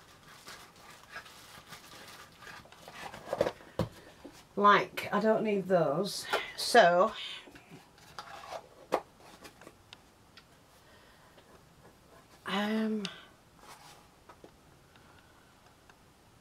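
A cardboard box scrapes and taps as it is handled.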